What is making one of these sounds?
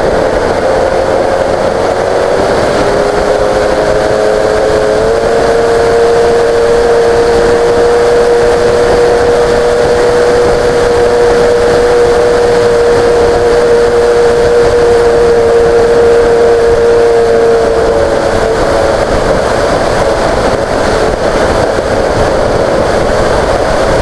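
A small aircraft's electric motor whines steadily, stepping up in pitch early on.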